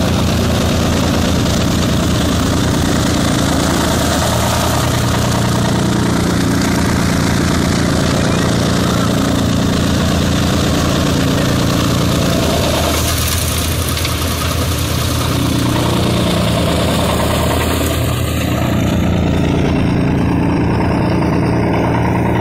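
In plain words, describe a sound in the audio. A tractor engine roars steadily close by.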